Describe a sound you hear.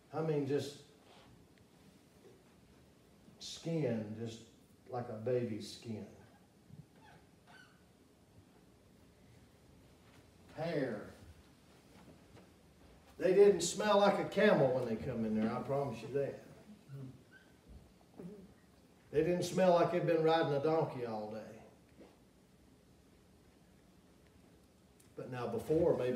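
A middle-aged man speaks with emphasis in a room that echoes a little, pausing often between phrases.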